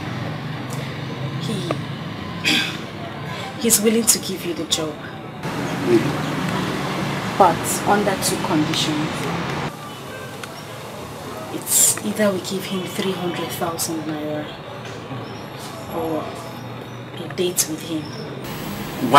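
A woman speaks tearfully and close by.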